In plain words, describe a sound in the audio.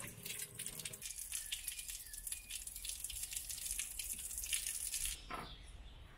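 Water trickles and splashes steadily.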